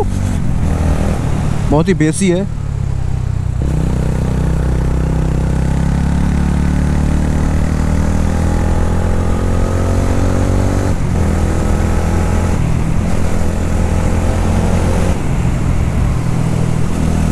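A motorcycle engine rumbles steadily and rises in pitch as it speeds up.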